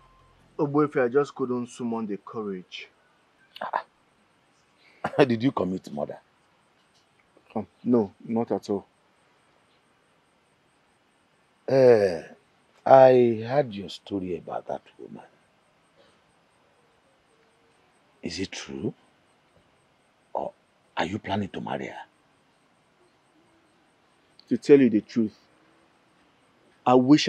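A middle-aged man speaks slowly and earnestly, close by.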